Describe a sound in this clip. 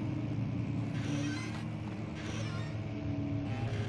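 A wooden wardrobe door creaks open.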